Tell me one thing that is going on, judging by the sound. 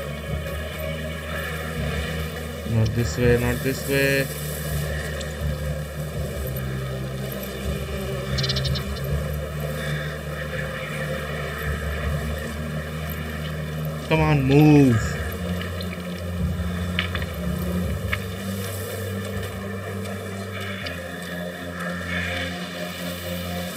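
Tall dry grass rustles softly as someone creeps through it.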